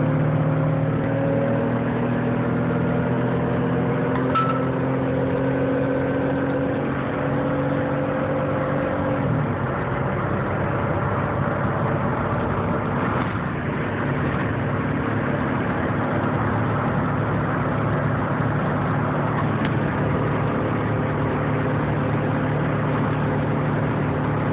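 Tyres roar on a road.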